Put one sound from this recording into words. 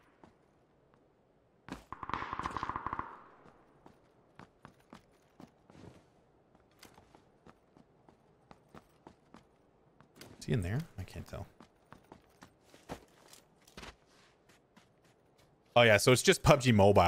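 Footsteps thud quickly on dry ground.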